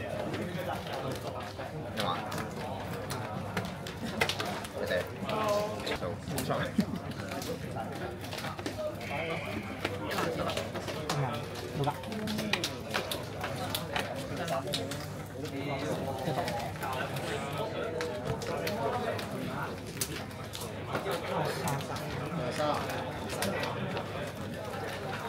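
Plastic card sleeves click and rustle as cards are shuffled.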